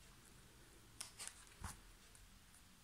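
A page of a book turns with a soft paper rustle.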